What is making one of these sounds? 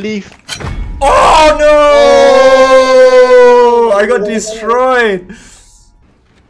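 A young man shouts loudly into a close microphone.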